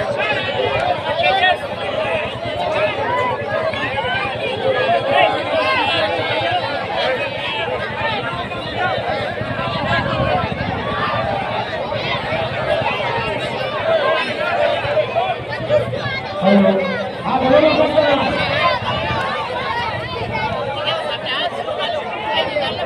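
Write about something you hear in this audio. A large outdoor crowd of men and boys chatters and shouts loudly.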